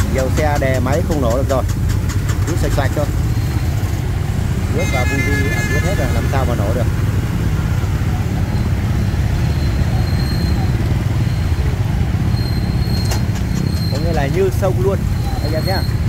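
Motorbike engines rumble steadily close by.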